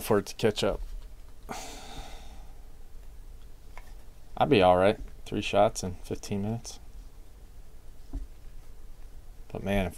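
Trading cards rustle and slide against each other as they are handled.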